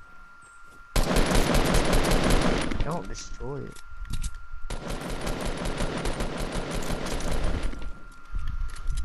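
Footsteps clatter quickly across wooden and stone floors.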